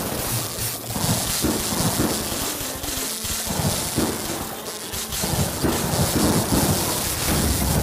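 Electric zaps and popping shots crackle in a video game.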